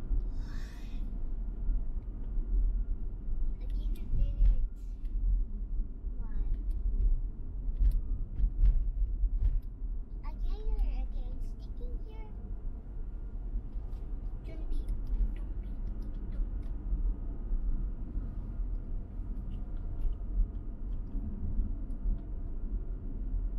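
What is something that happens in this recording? Tyres rumble on asphalt.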